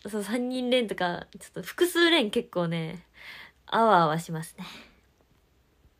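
A young woman laughs close to a microphone.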